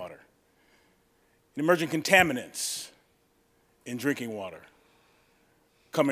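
A man speaks calmly into a microphone, pausing between phrases.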